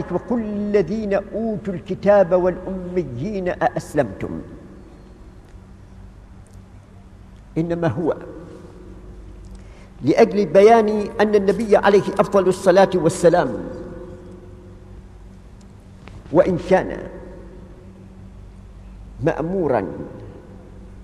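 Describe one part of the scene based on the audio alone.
An elderly man recites slowly in a melodic voice, in short phrases with pauses, heard through a microphone.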